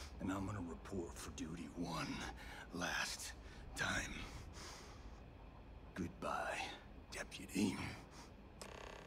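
A middle-aged man speaks calmly and gravely, close by.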